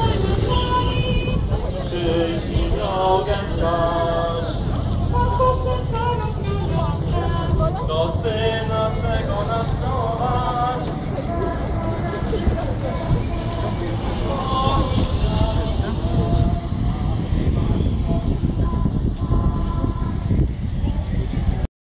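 A group of men and women sing together outdoors.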